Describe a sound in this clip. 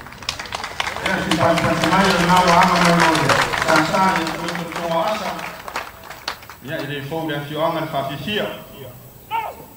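A large group of young people chants loudly in unison.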